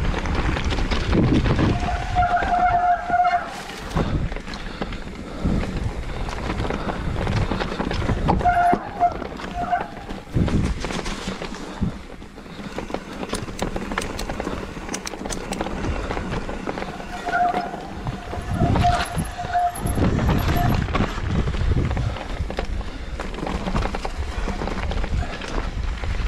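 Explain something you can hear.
Tyres crunch and roll over dirt and loose stones.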